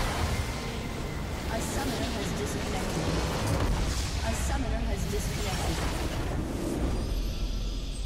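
A huge explosion booms and rumbles with crackling blasts.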